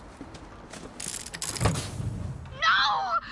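A metal chest creaks and clanks open.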